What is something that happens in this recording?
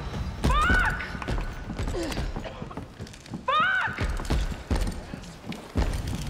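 Footsteps thud down wooden stairs and across a wooden floor.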